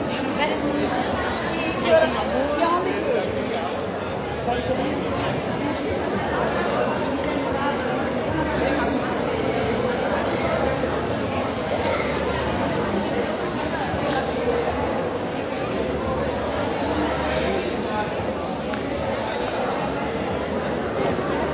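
A woman speaks through a microphone over loudspeakers in a large echoing space.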